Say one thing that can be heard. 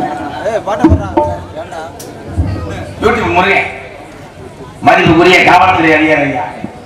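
A man speaks loudly and with animation through a microphone and loudspeakers.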